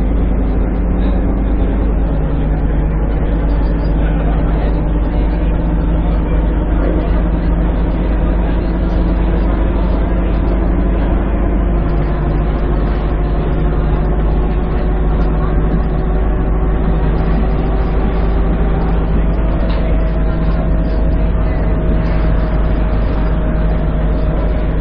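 A bus engine hums steadily and rises in pitch as the bus speeds up, dropping as gears change.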